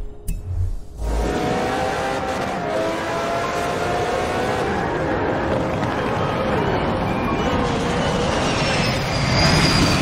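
A racing car engine roars at high revs, changing pitch as it shifts gears.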